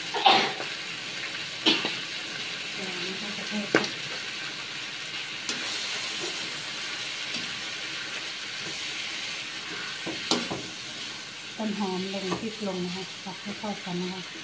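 A metal spatula scrapes and clanks against a wok while stir-frying.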